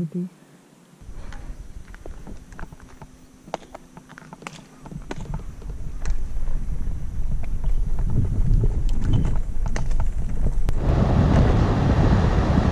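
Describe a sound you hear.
Bicycle tyres roll over rough asphalt.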